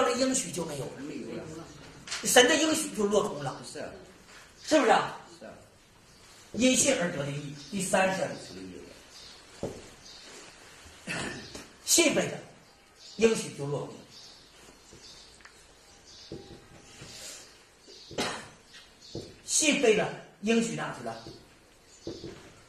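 A middle-aged man lectures with animation.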